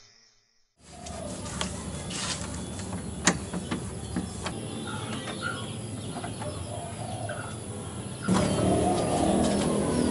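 A metal door handle clicks and rattles.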